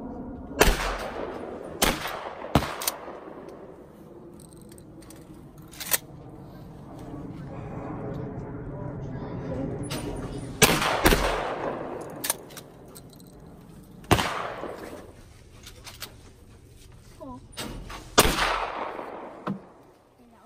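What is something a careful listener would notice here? Gunshots crack loudly outdoors, one at a time, each echoing away.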